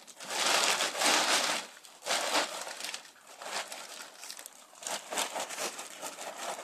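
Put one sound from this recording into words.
A plastic sheet rustles and crinkles loudly as it is shaken.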